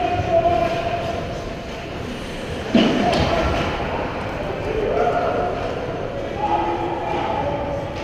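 Ice skates scrape and carve across the ice in a large echoing hall.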